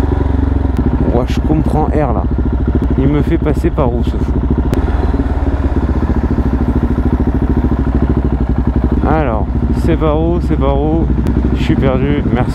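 A motorcycle engine revs up and down repeatedly as the motorcycle rides.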